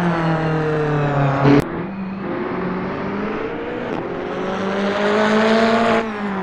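A racing car engine roars loudly.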